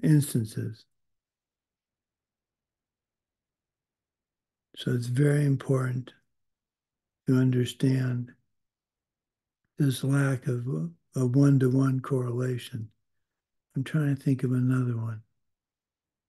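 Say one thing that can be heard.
An older man speaks calmly in short phrases over an online call, with pauses between them.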